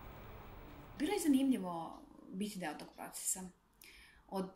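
A woman speaks calmly and close.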